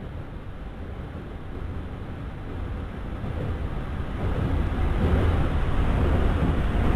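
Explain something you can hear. A subway train rumbles closer through a tunnel, growing louder.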